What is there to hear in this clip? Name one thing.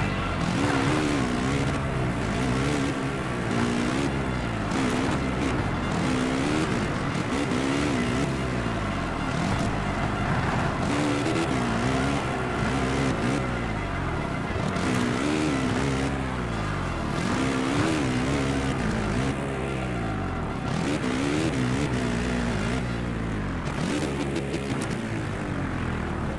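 A motocross engine revs up and down loudly, again and again.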